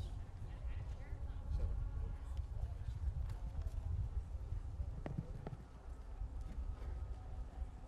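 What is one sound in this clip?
Wind gusts outdoors and buffets a microphone with a low rumble.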